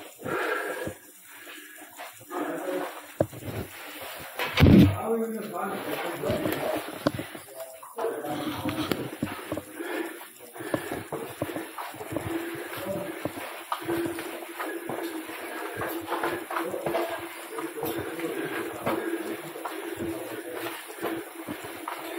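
Boots and hands knock and clank on a metal ladder.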